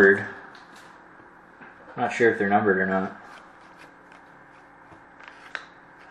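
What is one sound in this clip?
Cards rustle and tap.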